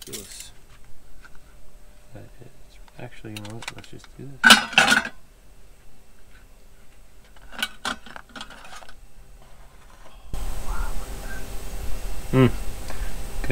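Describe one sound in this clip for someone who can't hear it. A fork clinks and scrapes against a plate.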